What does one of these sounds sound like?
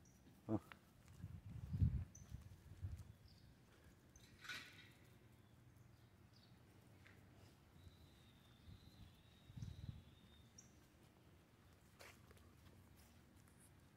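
A dog rustles through short grass.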